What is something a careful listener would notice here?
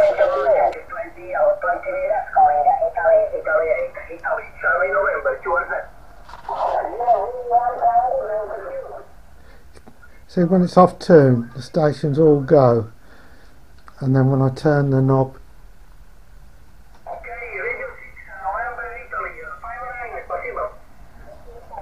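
A man talks close by, calmly explaining.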